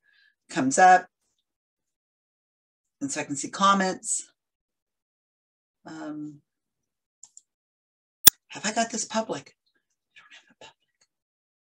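An older woman speaks calmly into a nearby microphone, in short phrases with pauses.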